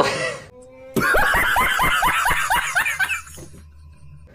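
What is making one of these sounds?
A man laughs loudly and wildly.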